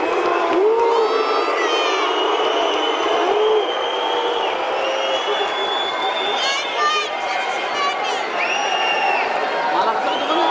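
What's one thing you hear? A large crowd cheers and whistles loudly in a big echoing arena.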